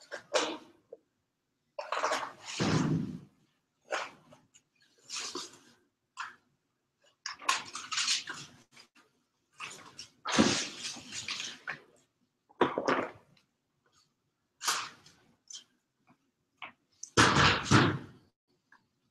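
Paper rips and rustles as it is peeled off a wall.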